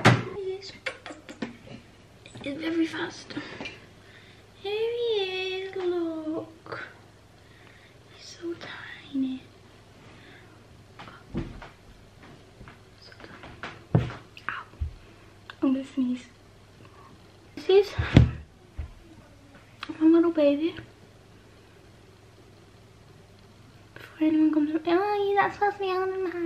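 A girl talks close by in a soft, animated voice.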